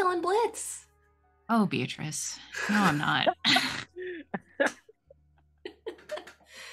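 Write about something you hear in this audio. A group of young men and women talk and laugh with animation over an online call.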